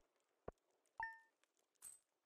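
A soft electronic chime blips as a score tallies up.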